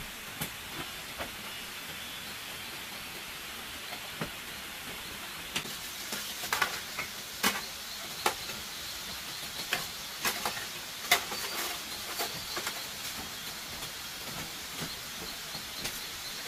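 Footsteps thud on a bamboo floor.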